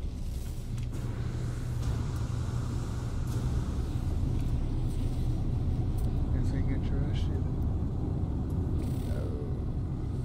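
A jetpack roars with a low, steady rumble.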